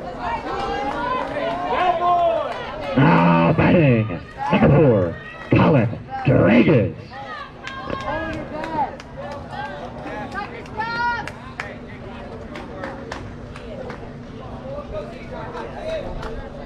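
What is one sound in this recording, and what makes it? Children and adults chatter in the background outdoors.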